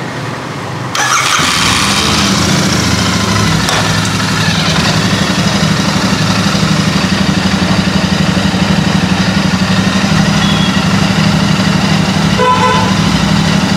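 A motorcycle engine idles with a steady throb.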